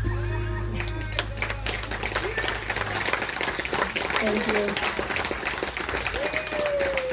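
A fiddle plays a melody.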